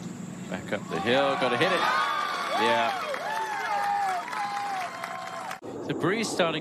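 A crowd cheers loudly outdoors.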